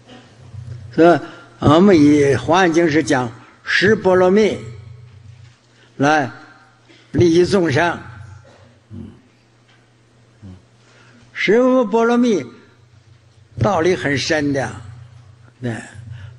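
An elderly man speaks calmly and slowly into a microphone, in short phrases with pauses.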